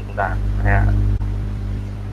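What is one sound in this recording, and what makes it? A man speaks briefly through an online call microphone.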